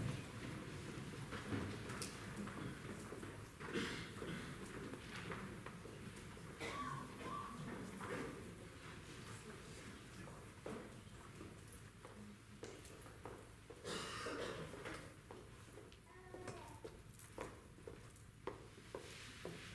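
Footsteps shuffle across a wooden stage.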